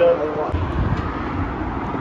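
A car drives along a street nearby.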